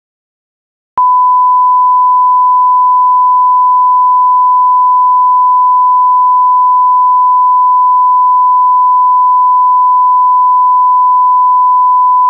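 A steady, high-pitched test tone sounds without a break.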